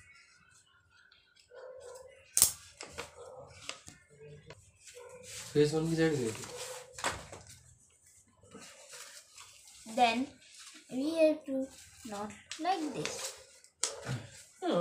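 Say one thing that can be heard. Paper rustles and crinkles in someone's hands.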